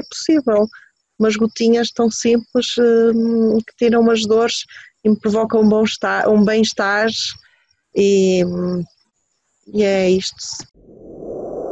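A middle-aged woman speaks with feeling over an online call.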